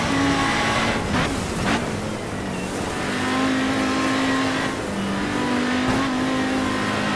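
A rally car engine roars and shifts gears.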